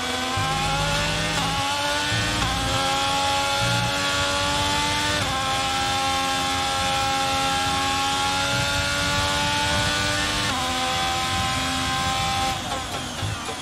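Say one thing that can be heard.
A racing car engine screams at high revs and shifts up through the gears.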